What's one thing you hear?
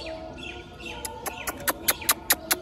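A man makes sharp kissing sounds close by to call birds.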